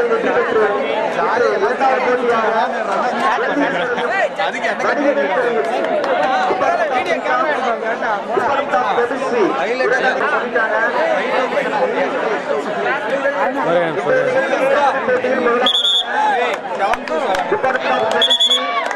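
A large outdoor crowd of young men and women chatters and shouts throughout.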